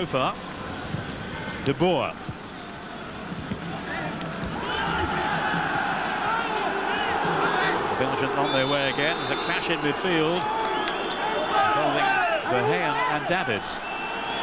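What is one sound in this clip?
A large stadium crowd roars throughout.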